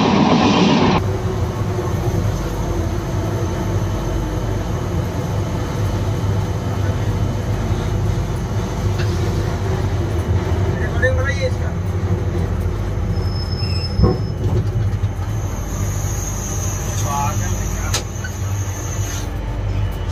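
A train rumbles along the track, heard from inside the cab.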